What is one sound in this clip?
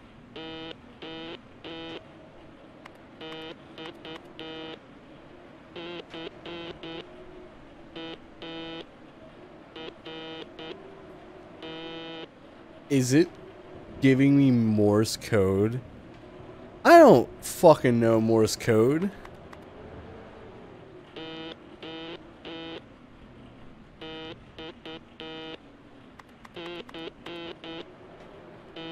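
Short electronic beeps sound in quick bursts as a keyboard selection moves.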